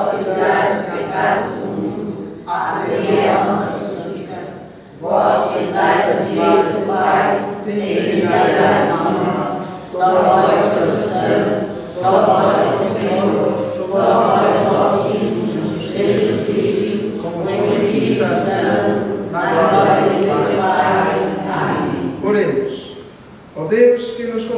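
A group of people sings together in a reverberant room.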